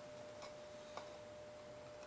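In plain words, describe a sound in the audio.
A small metal part clicks softly.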